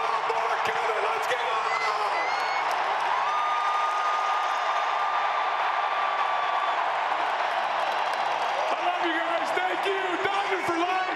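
A large stadium crowd cheers and roars throughout.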